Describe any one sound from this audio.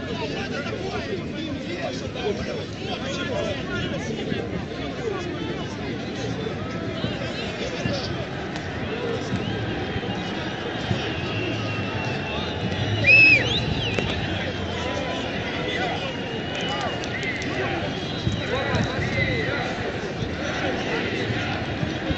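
A large crowd murmurs and talks outdoors.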